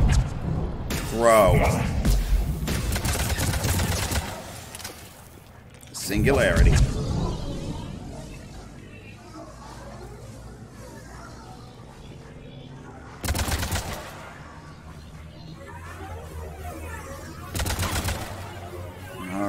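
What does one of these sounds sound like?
Energy blasts boom and crackle.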